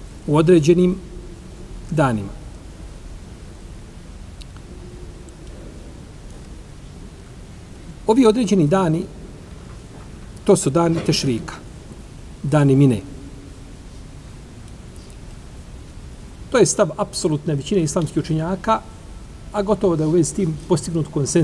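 A middle-aged man reads aloud calmly into a microphone, in short bursts with pauses.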